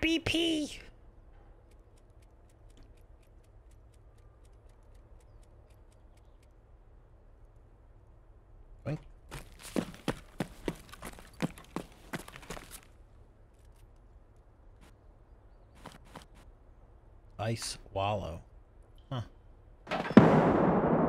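A man talks into a close microphone, in short bursts.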